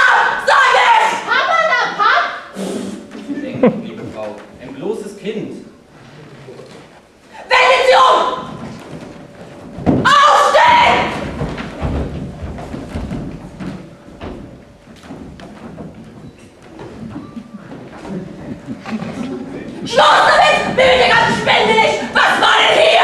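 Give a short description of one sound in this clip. Young actors speak loudly on a stage in an echoing hall.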